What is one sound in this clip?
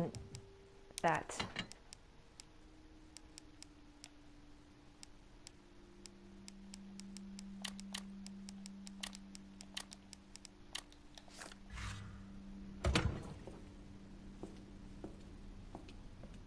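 Short, soft electronic clicks tick again and again.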